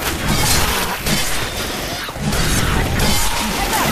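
A melee weapon swings and thuds into bodies.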